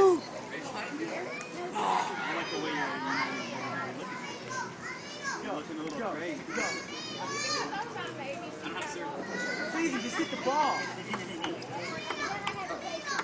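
A ping pong ball clicks back and forth across a table.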